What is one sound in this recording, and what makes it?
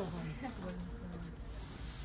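Fabric rustles as a man handles clothes.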